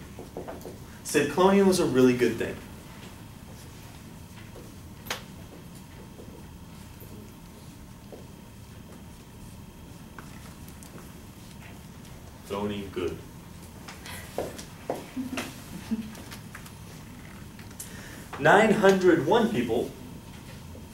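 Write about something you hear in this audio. A man speaks with animation in short bursts.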